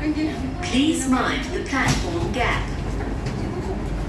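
Train doors slide open.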